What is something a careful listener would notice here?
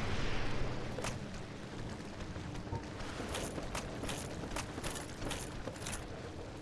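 Armoured footsteps clank on wooden boards.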